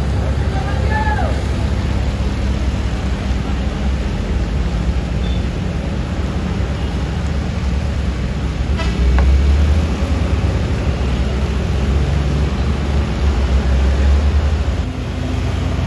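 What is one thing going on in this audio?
Tyres hiss on a wet road surface.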